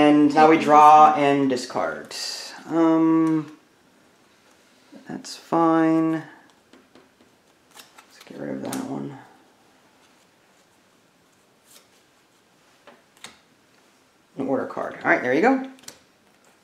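Playing cards slide and tap on a wooden table.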